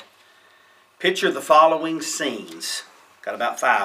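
A middle-aged man speaks calmly and close by, as if reading aloud.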